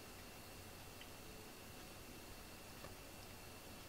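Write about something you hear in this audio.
A cat licks its fur with soft, wet strokes close by.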